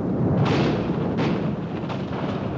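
Thunder cracks.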